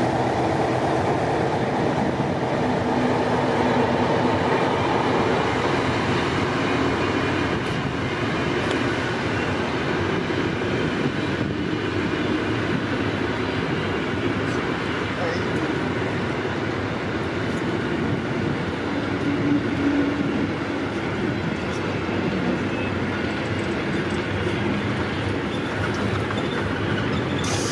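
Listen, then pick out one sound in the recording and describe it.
A train rolls past close by, its wheels clattering and rumbling on the track.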